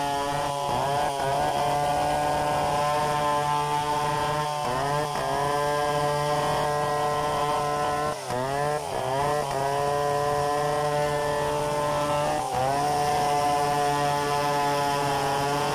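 A second two-stroke chainsaw cuts into wood nearby.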